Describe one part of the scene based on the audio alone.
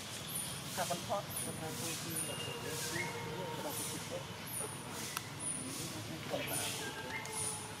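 Dry leaves rustle under a monkey's feet.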